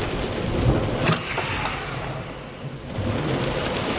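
A heavy metal door swings open.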